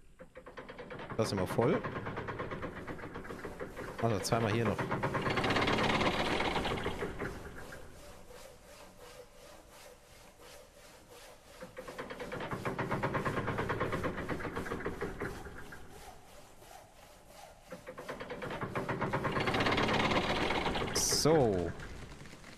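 A crane's gears ratchet and whir.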